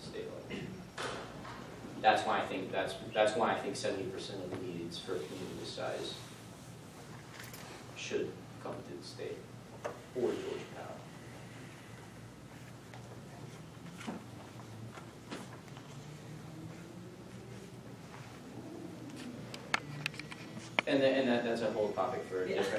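A man speaks calmly to a room, heard through a microphone with some echo.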